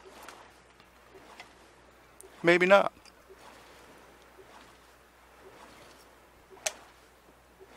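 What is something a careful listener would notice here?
A paddle dips and splashes in calm water.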